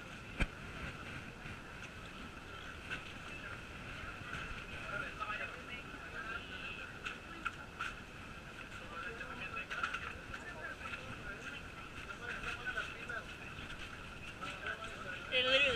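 A crowd of young men and women chatters nearby.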